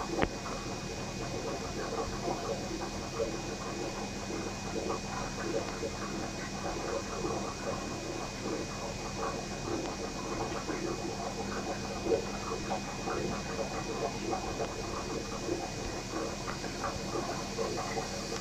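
Water bubbles and gurgles steadily in a small tank.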